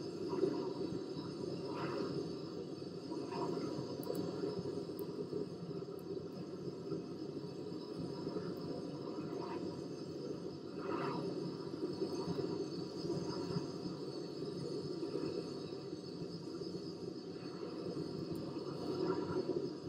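Jet engines roar steadily as an airliner flies overhead.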